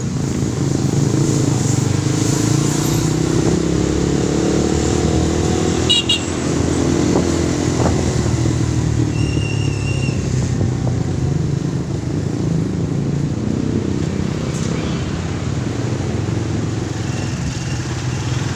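Traffic passes by on the street.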